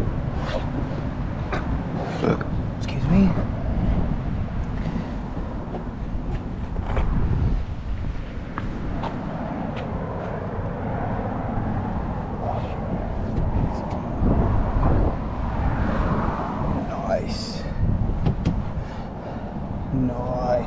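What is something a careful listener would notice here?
A microfiber towel rubs over a truck's painted body.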